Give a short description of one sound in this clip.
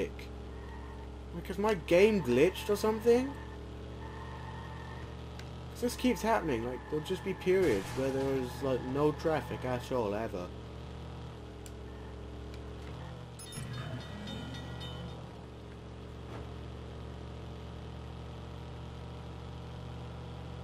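A car engine drones in a video game.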